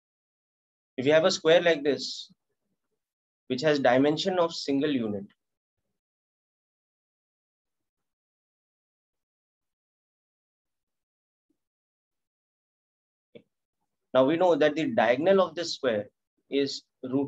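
A man speaks calmly into a microphone, heard as in an online lesson.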